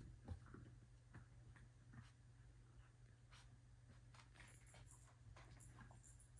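Puppies' paws patter on a hard floor.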